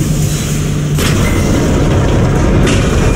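An explosion booms with a deep roar.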